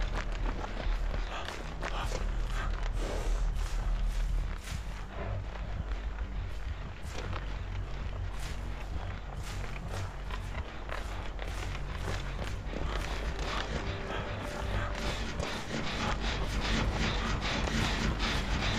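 Footsteps run quickly through grass and brush.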